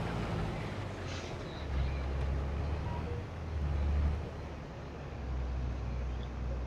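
A combine harvester's engine rumbles steadily, swelling and easing.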